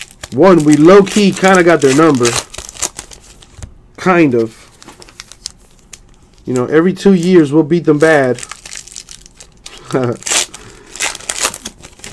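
Foil card wrappers crinkle and tear in someone's hands.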